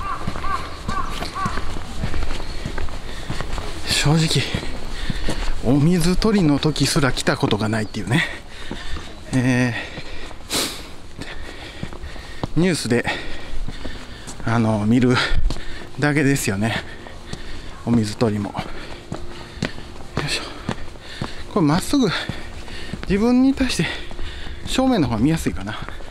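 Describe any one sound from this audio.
Footsteps climb stone steps.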